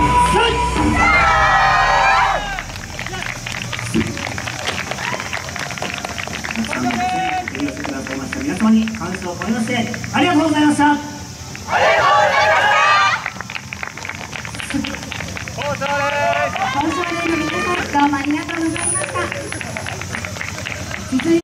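Wooden clappers click in a steady rhythm.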